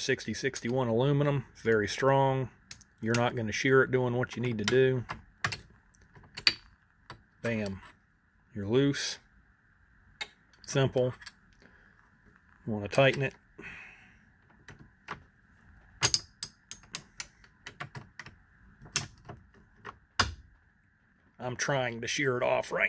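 A hex key scrapes as it turns a bolt.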